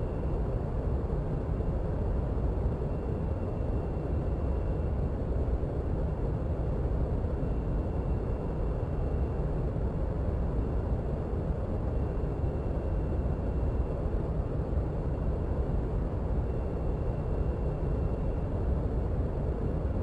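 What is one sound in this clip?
A jet engine idles with a steady low rumble.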